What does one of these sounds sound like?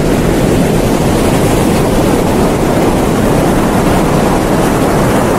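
Waves break and wash up onto a beach.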